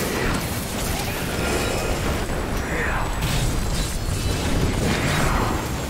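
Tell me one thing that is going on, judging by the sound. Magic spells blast and crackle in a game battle.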